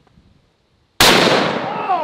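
A rifle fires a loud shot outdoors.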